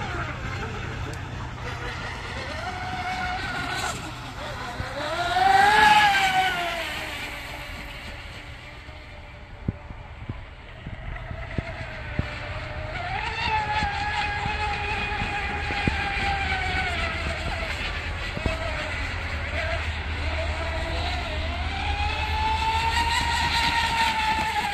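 A model boat's motor whines at high speed, rising and falling in pitch as it passes close by and races away.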